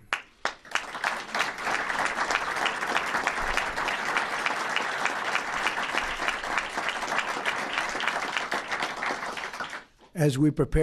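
An audience applauds loudly in a large room.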